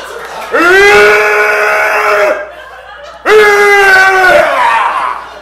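A young man belts out a long, loud held note twice.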